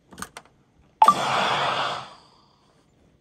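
A video game plays a short whooshing sound as a match loads.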